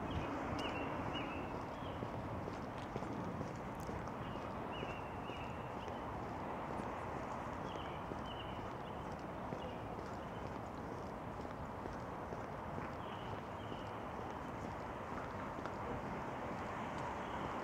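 Footsteps tap on a paved sidewalk.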